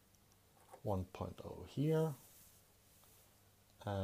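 A plastic ruler slides and clacks on paper.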